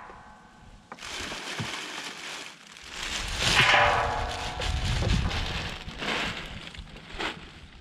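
A plastic bag rustles and crinkles loudly.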